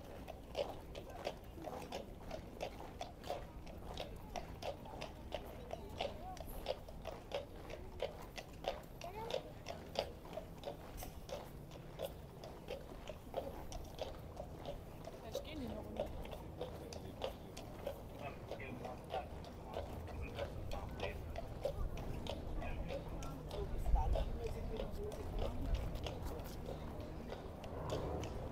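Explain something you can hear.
A military brass band plays a march outdoors.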